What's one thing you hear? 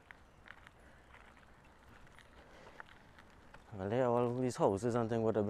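Bicycle tyres roll quietly over a paved road.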